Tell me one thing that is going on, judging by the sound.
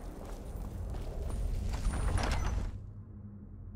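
A heavy stone door rumbles and grinds open.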